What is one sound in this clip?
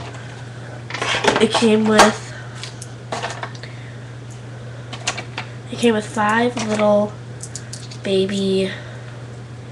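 A young girl speaks calmly, close by.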